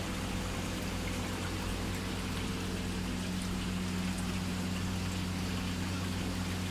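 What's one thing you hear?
Water bubbles and splashes in fish tanks.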